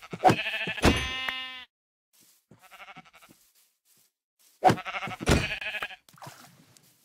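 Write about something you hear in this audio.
A pig squeals and grunts as it is struck.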